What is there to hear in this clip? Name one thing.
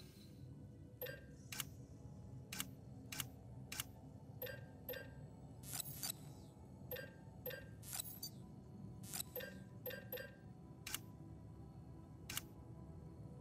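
Short electronic blips click in quick succession as menu selections change.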